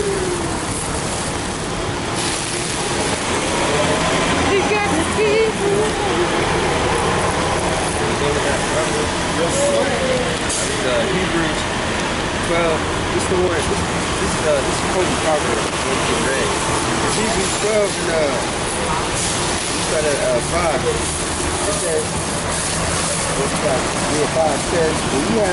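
A man speaks loudly and with animation close by, outdoors.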